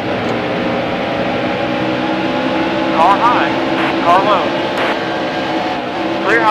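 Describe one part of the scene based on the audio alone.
Racing car engines roar steadily at high speed.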